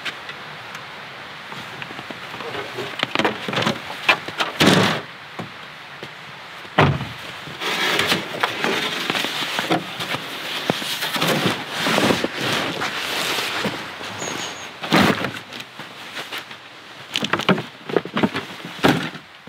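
Boots crunch on packed snow.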